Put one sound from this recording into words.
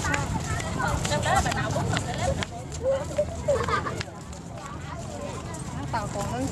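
Several women chat with animation close by, outdoors.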